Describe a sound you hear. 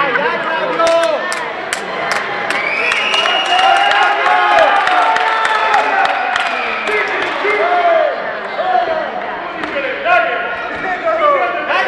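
A crowd of spectators shouts and cheers in a large hall.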